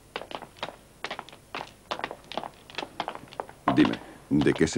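Footsteps echo on a hard floor.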